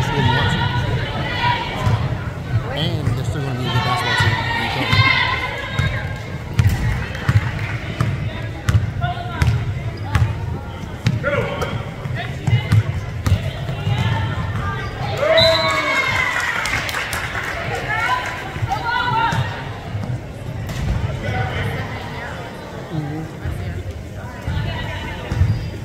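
Spectators nearby chatter and call out.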